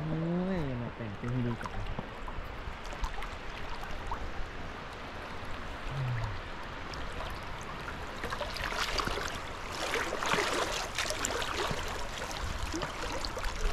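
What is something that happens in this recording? Water swishes and splashes around a man wading.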